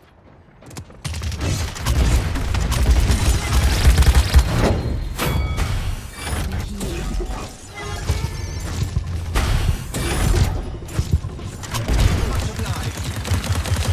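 Heavy guns fire in rapid, roaring bursts.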